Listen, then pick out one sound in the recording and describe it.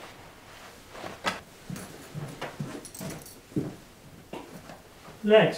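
Bags rustle and knock as things are packed.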